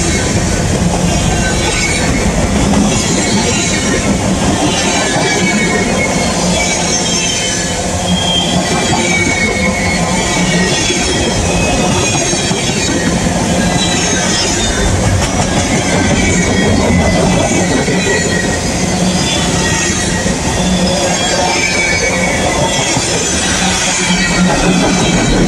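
Wheels clack over rail joints in a steady rhythm.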